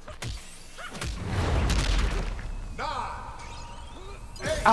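Punches land with heavy thuds in a fight.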